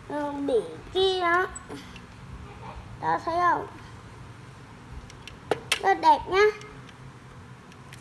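Plastic parts of a toy truck click and clack as they are folded.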